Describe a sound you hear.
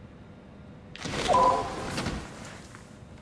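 An electronic gadget beeps and chirps as a lock unlocks.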